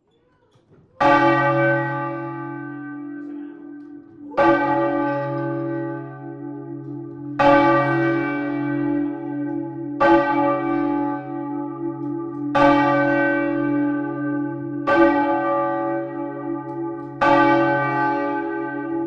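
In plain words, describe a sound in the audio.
A large church bell tolls loudly again and again, each stroke ringing on and slowly fading.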